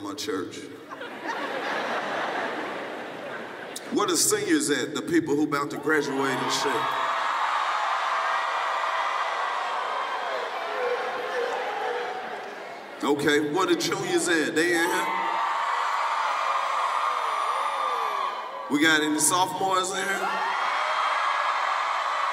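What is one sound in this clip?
A large crowd laughs and cheers.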